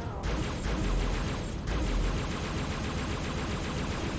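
A plasma gun fires in rapid crackling bursts.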